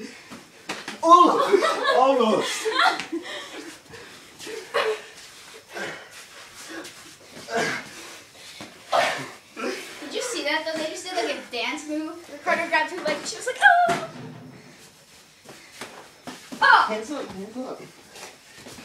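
A young woman shouts with excitement nearby.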